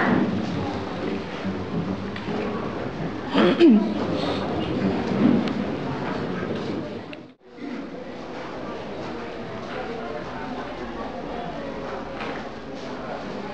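A string ensemble plays a slow melody in an echoing hall.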